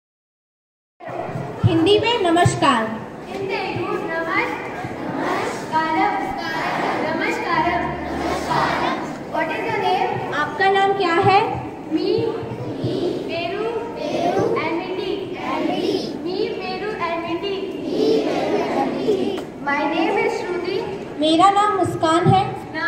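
Young girls speak in turn through microphones, heard over loudspeakers outdoors.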